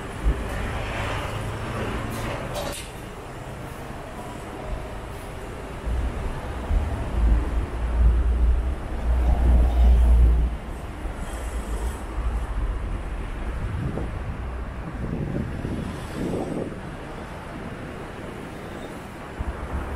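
Traffic rumbles steadily past on a city street.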